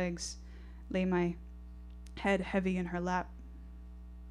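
A young woman reads aloud calmly into a microphone, heard through loudspeakers.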